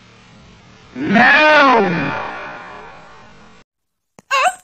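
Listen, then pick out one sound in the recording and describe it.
A man shouts loudly with animation.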